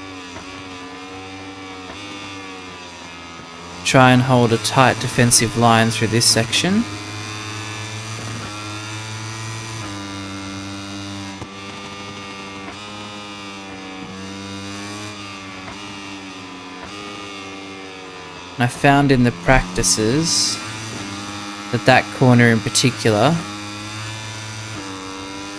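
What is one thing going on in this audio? A motorcycle engine roars and revs up and down as it races.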